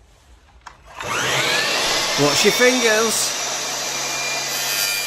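A mitre saw's motor whirs loudly as it spins up.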